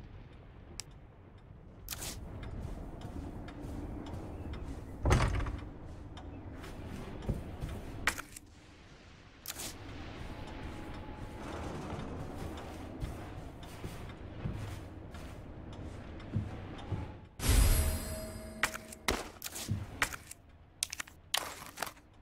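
Menu clicks and chimes sound sharply.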